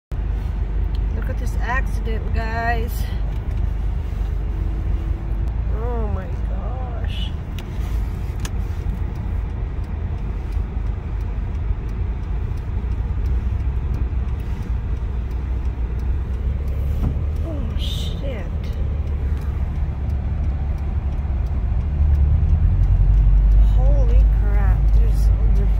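A car's tyres rumble steadily on the road from inside the car, growing louder near the end.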